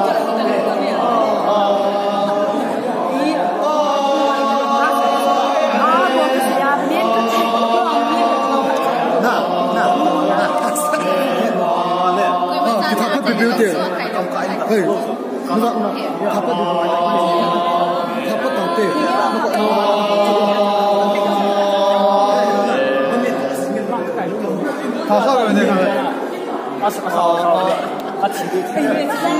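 Young men and women chat and laugh close by.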